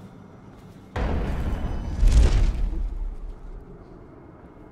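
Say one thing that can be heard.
A deep whooshing rush surges and fades.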